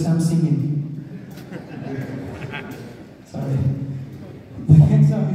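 A man speaks loudly through a microphone over loudspeakers.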